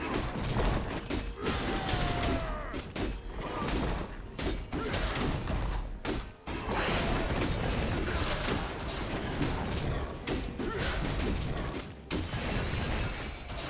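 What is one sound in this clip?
Game characters clash with bursts of spell and weapon effects.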